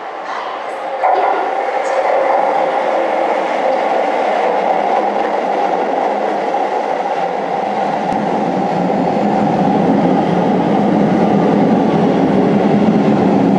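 A train rolls in and slows, its wheels rumbling and screeching on the rails.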